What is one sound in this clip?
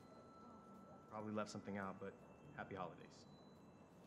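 A young man speaks loudly to a group.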